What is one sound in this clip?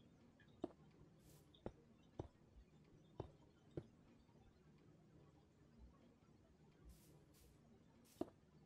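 Footsteps thud softly on grass in a video game.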